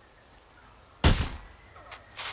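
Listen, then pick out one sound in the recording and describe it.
A suppressed rifle fires a single shot.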